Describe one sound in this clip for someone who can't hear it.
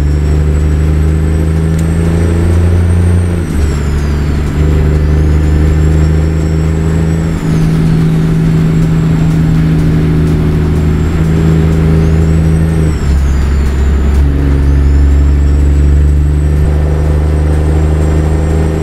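A turbo whistles and sighs between gear changes.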